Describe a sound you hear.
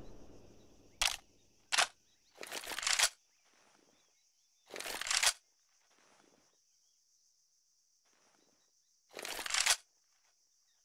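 Rifle shots ring out in short, loud bursts.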